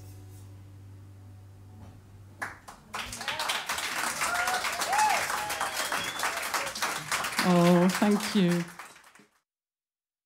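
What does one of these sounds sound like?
A piano plays along.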